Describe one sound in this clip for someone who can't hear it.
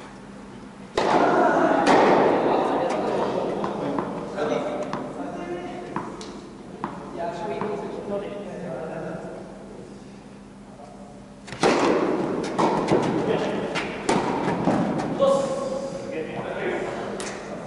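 Tennis balls pop off rackets in a large echoing hall.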